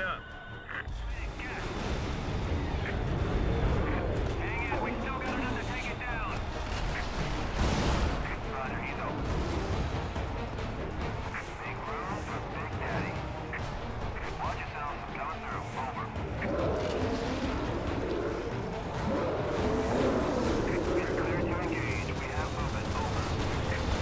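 Explosions boom and rumble deeply.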